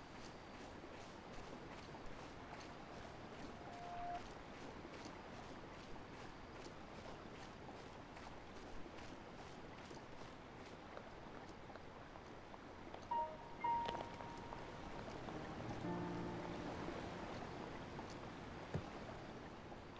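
Footsteps crunch over grass.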